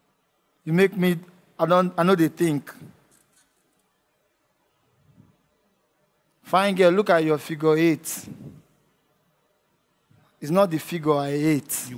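A young man speaks with animation through a headset microphone, in short bursts with pauses.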